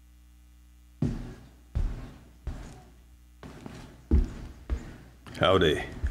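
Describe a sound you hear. A man speaks into a microphone in an echoing hall.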